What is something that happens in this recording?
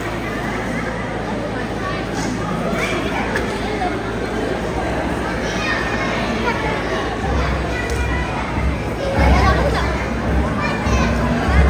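Music plays loudly through loudspeakers.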